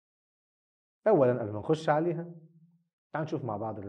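A man speaks calmly into a close microphone, explaining.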